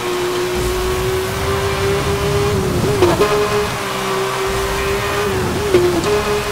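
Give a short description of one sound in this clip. A sports car engine roars at high speed, its pitch dipping briefly at each gear change.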